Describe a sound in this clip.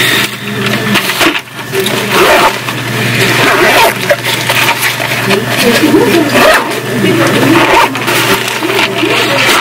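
A fabric bag rustles and its zipper rasps.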